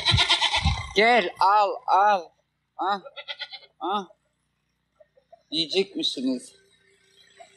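Goats bleat loudly nearby, several times.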